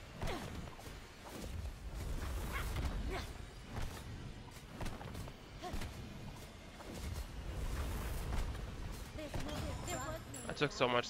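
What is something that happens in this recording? Heavy blows and fiery blasts thud and burst in a fight.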